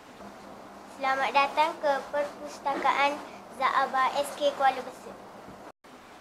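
A young girl speaks clearly and calmly close by.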